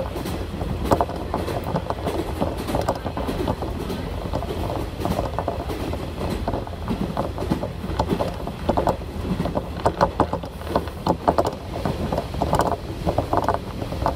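A diesel railcar rumbles along the track, heard from inside.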